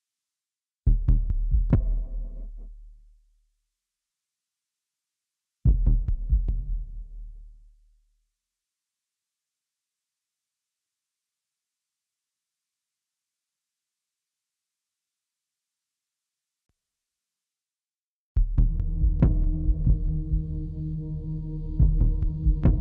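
Electronic music plays in short bursts, with deep bass notes and sharp beats.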